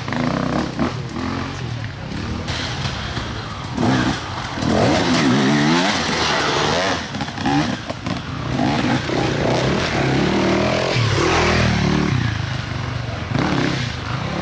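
A dirt bike engine revs and sputters close by.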